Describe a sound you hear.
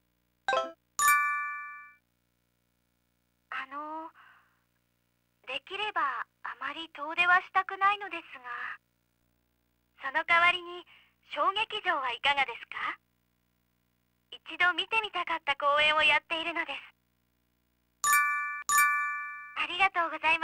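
An electronic chime sounds in short, bright beeps.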